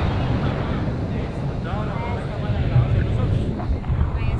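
A man talks loudly over the wind, close by.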